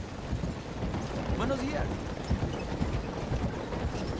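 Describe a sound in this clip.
Wagon wheels rumble over wooden planks.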